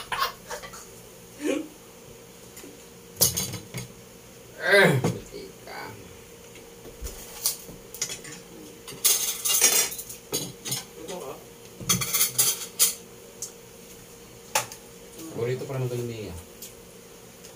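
Spoons and forks clink against plates.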